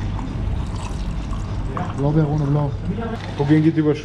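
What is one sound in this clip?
Ice clinks in a plastic cup as a drink is stirred.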